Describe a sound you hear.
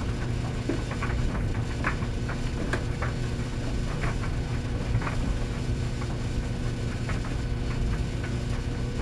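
A commercial tumble dryer rumbles and hums as it runs.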